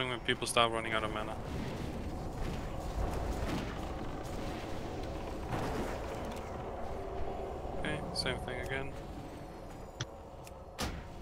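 Spell effects and weapon hits clash in a busy game battle.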